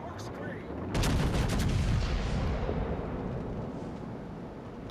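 Big guns fire with deep booming blasts.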